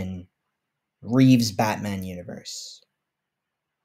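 A young man speaks briefly and casually, close to a microphone.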